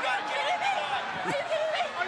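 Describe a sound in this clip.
A woman yells angrily.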